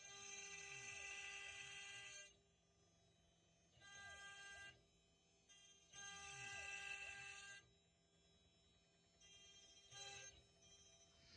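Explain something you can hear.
An electric drill whirs faintly in short bursts.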